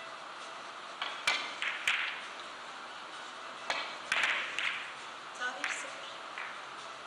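Billiard balls click against each other and knock off the cushions.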